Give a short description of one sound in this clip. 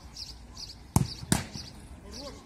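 A football is kicked hard and thumps against a surface.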